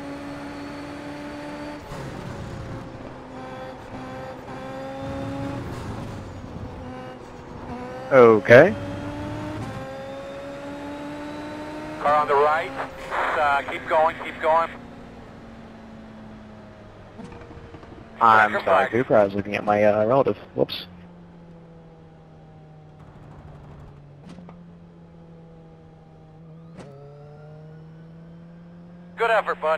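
A race car engine whines and rises and falls in pitch as the car speeds up and slows down.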